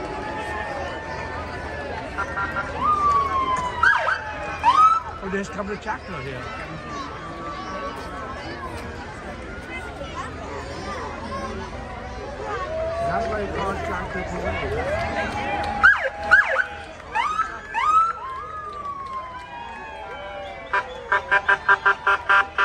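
A crowd chatters and cheers outdoors.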